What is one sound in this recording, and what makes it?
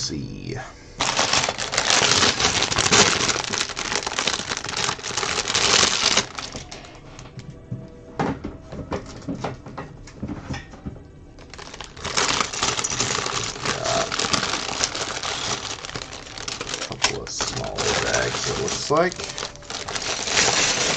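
A plastic bag crinkles and rustles loudly as hands handle it.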